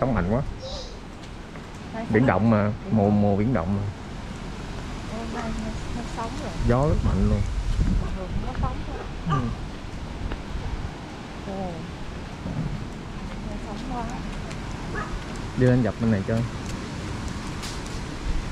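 A young child chatters and calls out nearby.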